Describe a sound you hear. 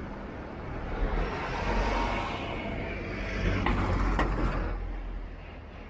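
A van drives past.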